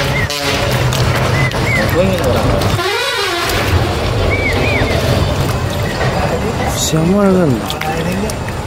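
Hands squelch and splash in shallow muddy water.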